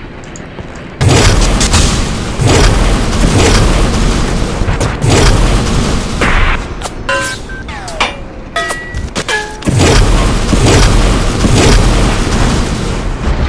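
Fireballs burst with loud, roaring blasts.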